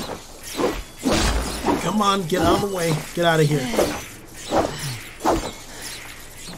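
Blades clash and thud in a fight.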